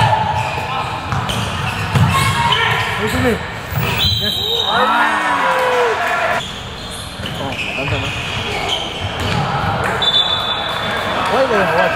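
Sneakers squeak sharply on a hall floor.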